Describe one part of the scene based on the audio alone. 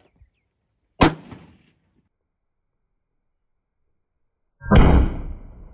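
A rifle fires a loud, sharp shot close by.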